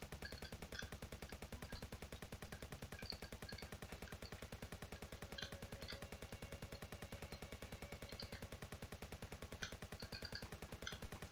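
Rapid electronic gunfire shots ring out in quick bursts.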